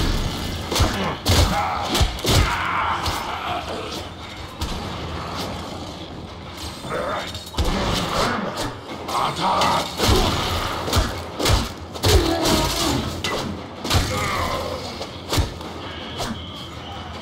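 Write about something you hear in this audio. A character's footsteps and landings thud sharply, again and again.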